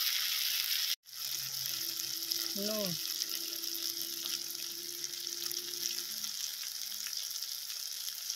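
Food sizzles and bubbles in a hot pan.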